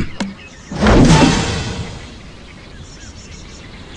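A cartoon bird is flung from a slingshot with a whoosh.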